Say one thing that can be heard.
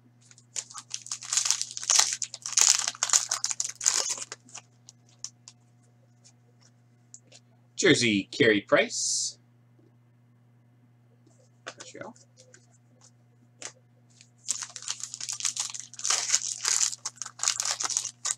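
A foil wrapper crinkles and rustles as hands tear it open.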